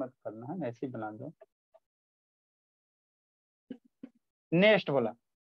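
A young man speaks close to a clip-on microphone, explaining in a steady teaching voice.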